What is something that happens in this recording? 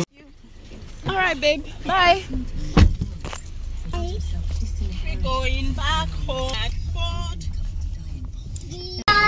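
A woman talks in a lively, sing-song voice close by.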